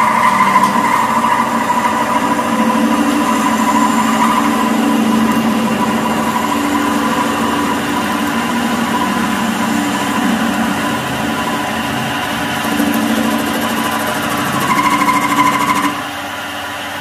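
A lathe machine hums and whirs steadily close by.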